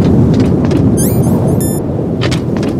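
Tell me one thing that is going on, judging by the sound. Short electronic beeps chime in quick succession.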